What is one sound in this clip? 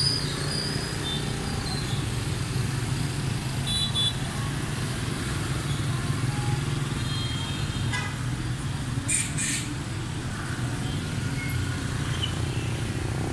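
Motorbike engines hum steadily as scooters ride past on a busy street.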